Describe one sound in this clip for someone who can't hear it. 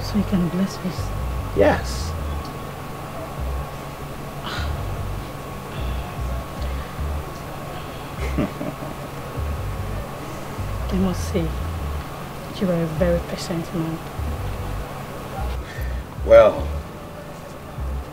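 A woman speaks with feeling and closely.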